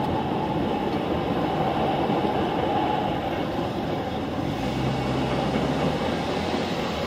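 A railroad crossing bell rings steadily.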